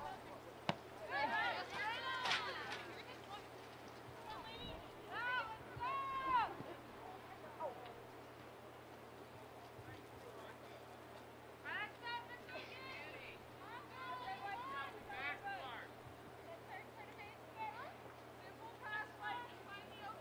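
Young women shout to each other across an open field.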